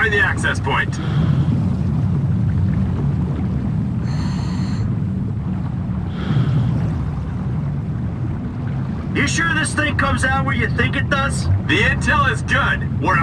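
A steady low underwater rumble fills the scene.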